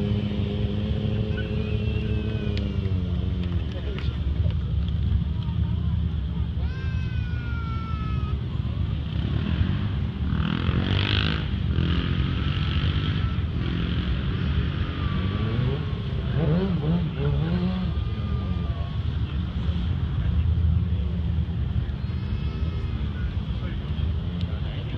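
A motorcycle engine roars and revs loudly, outdoors.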